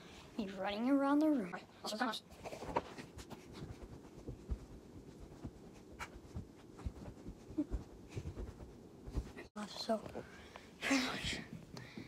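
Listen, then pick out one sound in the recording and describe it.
A phone rustles and bumps as it is handled.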